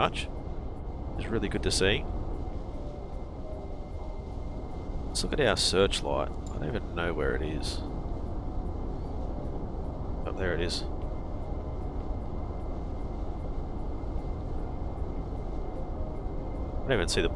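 A ship's engine rumbles low and steady.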